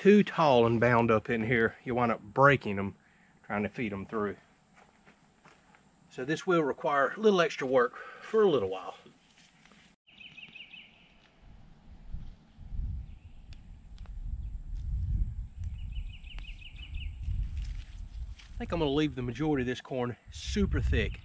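A man talks calmly and clearly close by.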